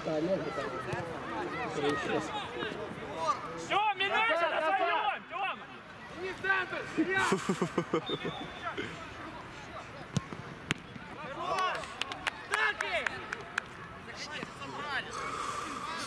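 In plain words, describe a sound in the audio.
Young men shout and call to each other outdoors on an open field.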